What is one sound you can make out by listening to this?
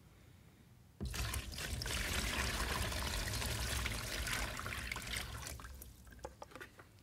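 Water pours from a jug and splashes into a plastic tub.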